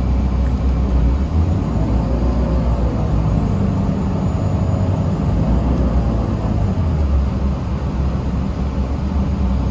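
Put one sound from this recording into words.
Tyres roll over the road with a steady hum.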